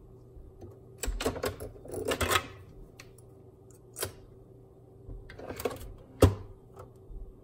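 A plastic lid clicks open and shut on a coffee machine.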